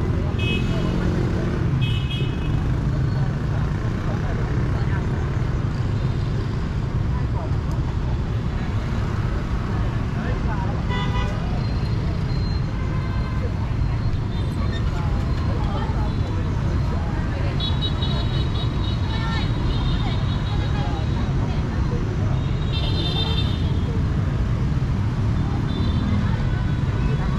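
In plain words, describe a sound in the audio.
Motorbike traffic hums and rumbles steadily outdoors.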